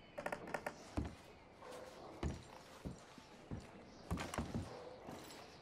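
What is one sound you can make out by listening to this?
Heavy boots thud on wooden floorboards.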